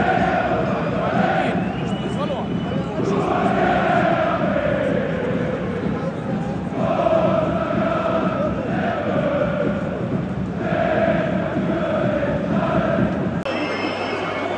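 A large stadium crowd chants loudly in unison.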